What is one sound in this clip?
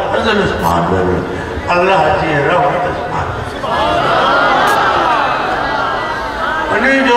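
An elderly man speaks with animation through a microphone and loudspeakers, outdoors.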